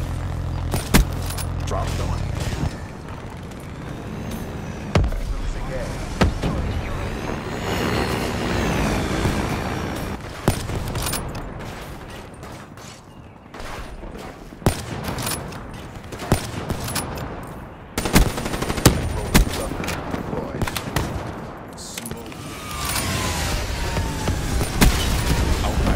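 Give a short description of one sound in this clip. A rifle fires single loud, sharp shots, one after another at uneven gaps.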